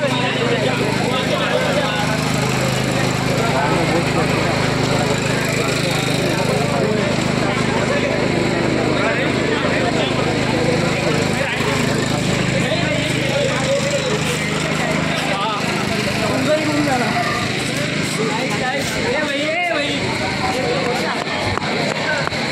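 A crowd of men and women talks and chatters loudly outdoors.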